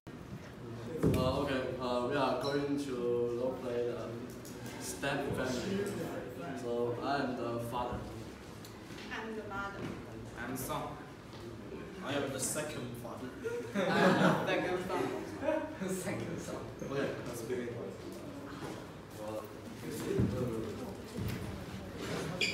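Teenage boys and girls talk in turn, close by.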